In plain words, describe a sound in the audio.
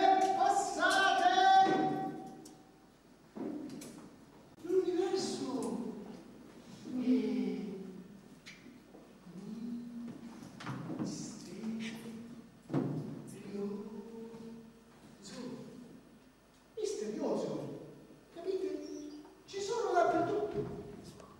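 A man speaks loudly with animation on a stage in an echoing hall.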